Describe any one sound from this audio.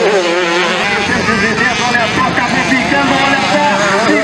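Motorcycle engines roar and rev as dirt bikes race by.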